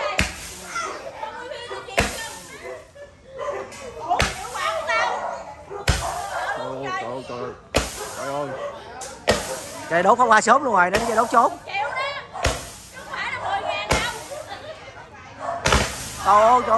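Firecrackers bang loudly, again and again, outdoors.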